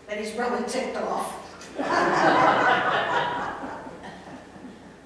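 An elderly woman speaks animatedly.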